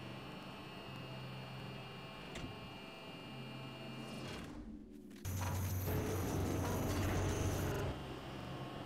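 A heavy machine whirs and rumbles as it moves.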